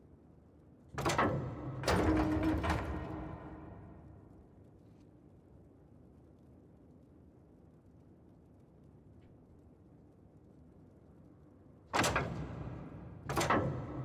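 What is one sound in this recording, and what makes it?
Heavy stone grinds and clunks as a statue arm turns.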